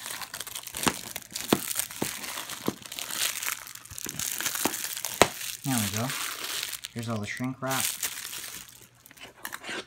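Plastic wrap crinkles and rustles as it is torn off.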